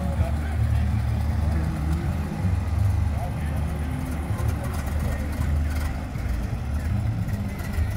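An old car's engine rumbles low and steadily close by.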